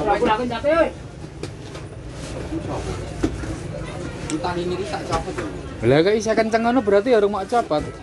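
Cardboard boxes thump and scrape as they are stacked.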